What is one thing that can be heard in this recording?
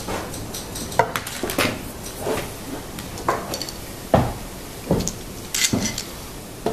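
Wooden pieces knock and clatter on a wooden table.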